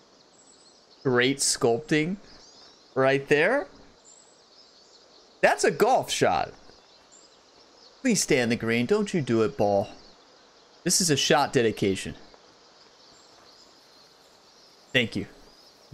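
A young man talks casually into a close microphone, in short bursts.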